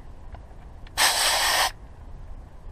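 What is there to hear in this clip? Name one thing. Air hisses briefly from a tyre valve.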